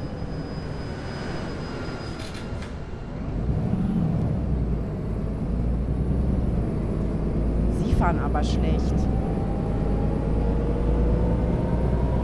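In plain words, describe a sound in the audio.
A bus engine hums and rises as the bus speeds up.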